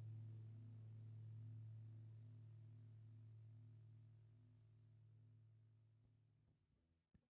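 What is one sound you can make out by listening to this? A low guitar note rings out and slowly fades away.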